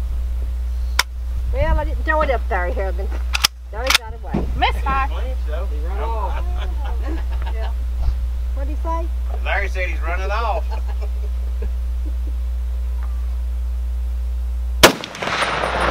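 A rifle fires loud single shots outdoors, with a brief echo.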